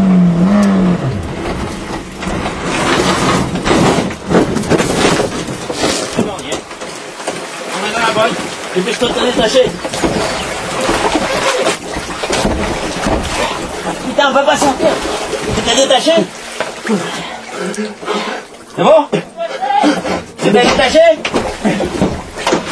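A car crashes and tumbles, with loud bangs and clattering.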